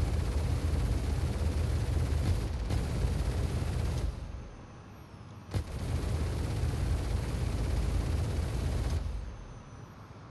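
A spaceship engine roars loudly in bursts.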